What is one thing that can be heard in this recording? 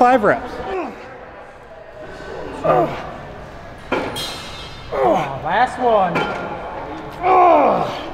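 An older man groans and grunts loudly with strain, close by.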